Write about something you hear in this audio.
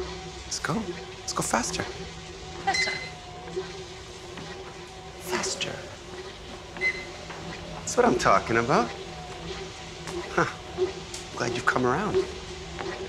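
A treadmill belt hums steadily.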